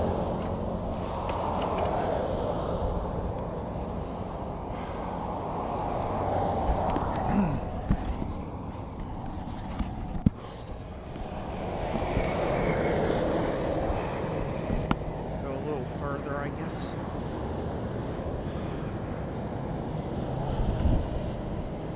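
Bicycle tyres roll and crunch over a rough path.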